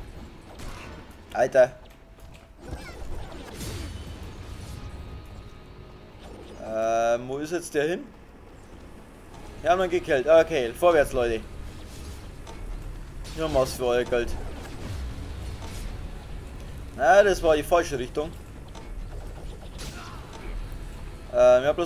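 Blades slash and clash in a fast fight.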